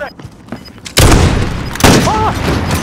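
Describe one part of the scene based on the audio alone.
Gunshots blast loudly, close by.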